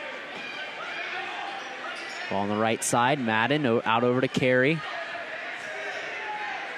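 A crowd murmurs in a large echoing gym.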